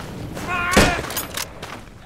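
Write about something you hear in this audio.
A rifle fires loud shots indoors.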